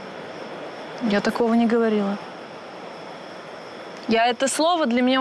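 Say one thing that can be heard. A young woman talks with animation nearby.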